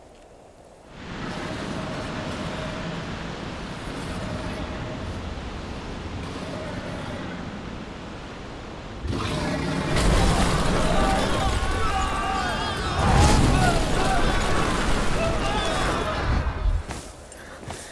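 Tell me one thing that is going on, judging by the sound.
A whirlwind roars and howls with rushing wind.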